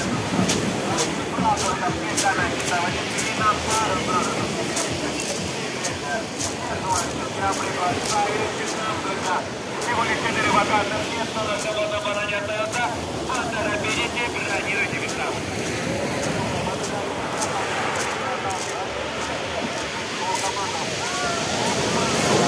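Waves wash and break onto a pebble shore.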